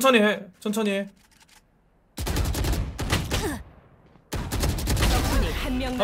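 Rapid gunfire bursts from a rifle.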